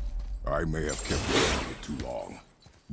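A flaming axe whooshes through the air.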